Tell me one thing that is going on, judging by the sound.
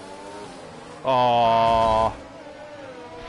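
A racing car slams into a wall with a loud crash.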